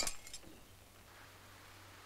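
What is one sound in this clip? A woman speaks, close by.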